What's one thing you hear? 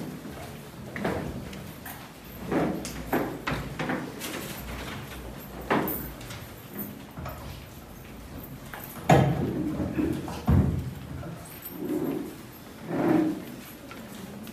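A wooden coffin lid bumps and thuds as it is lifted and moved.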